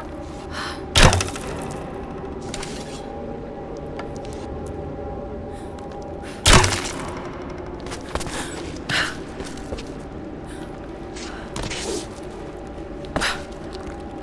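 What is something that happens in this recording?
An axe strikes wood with sharp, heavy thuds.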